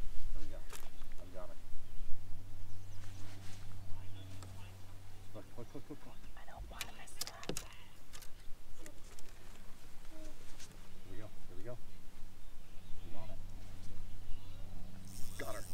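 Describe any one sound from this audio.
A fishing reel clicks as it is wound.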